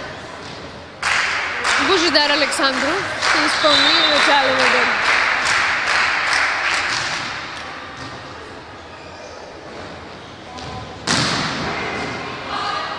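A crowd cheers and applauds in an echoing hall.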